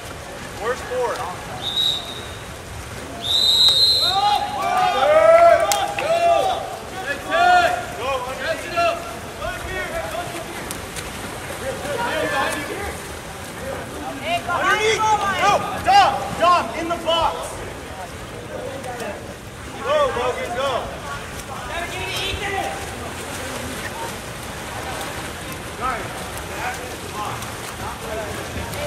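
Swimmers splash through water.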